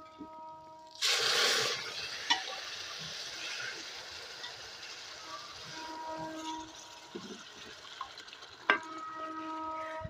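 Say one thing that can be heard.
Liquid poured into a hot pan sizzles loudly and steadily.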